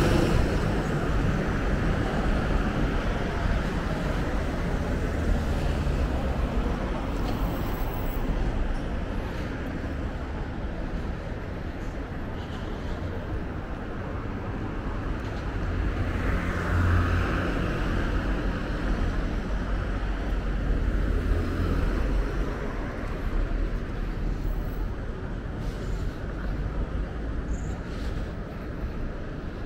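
Cars drive past close by on an asphalt road.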